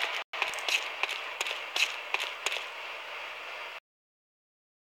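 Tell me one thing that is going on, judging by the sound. Heavy metal footsteps clank on a metal floor.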